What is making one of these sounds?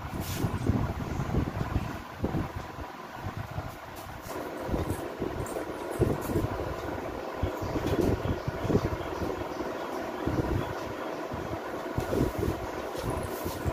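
Cloth rustles softly as fabric is handled and stacked.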